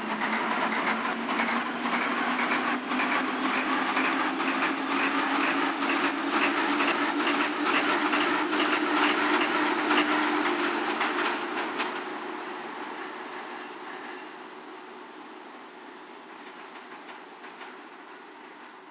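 A train rumbles past close by and slowly fades into the distance.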